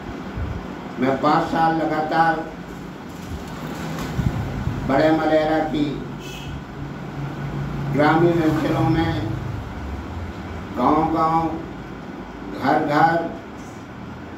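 A middle-aged man speaks calmly and firmly in short bursts, close by.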